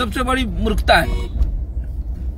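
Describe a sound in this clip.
A man speaks loudly and with emotion close to a phone microphone.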